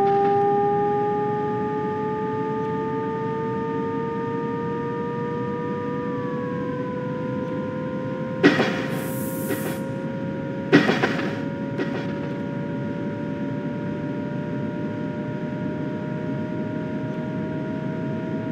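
Train wheels rumble over the rails.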